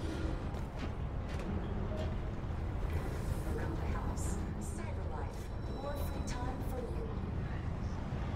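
An escalator hums steadily.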